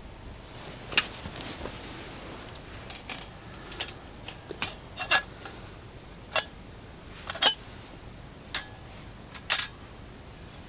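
Small sticks snap and click.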